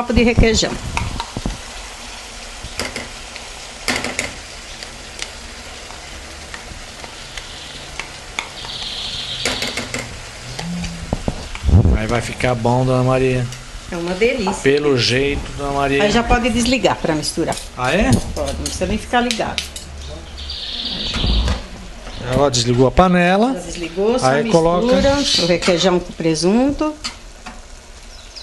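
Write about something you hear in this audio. A metal spoon scrapes and clinks against a cooking pot.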